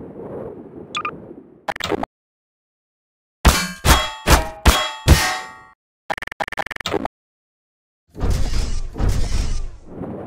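A futuristic gun fires with sharp electric zaps.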